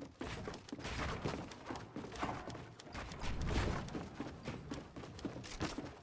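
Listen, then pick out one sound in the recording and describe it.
Wooden walls and ramps are built with rapid clicking thuds.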